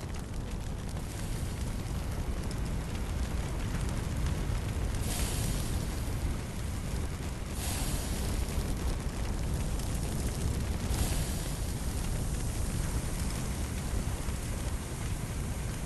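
A fire hose sprays a hissing jet of water.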